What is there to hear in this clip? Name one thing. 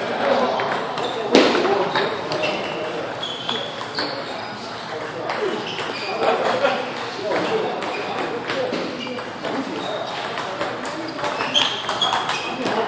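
A ping-pong ball clicks sharply back and forth off paddles and a table.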